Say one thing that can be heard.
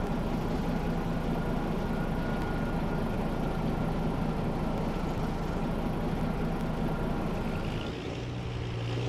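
A heavy truck engine idles with a steady low rumble.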